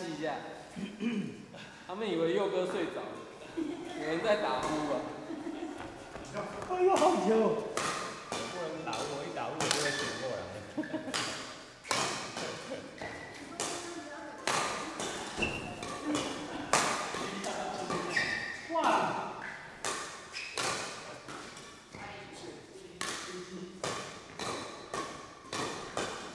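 Rackets smack a shuttlecock sharply, over and over.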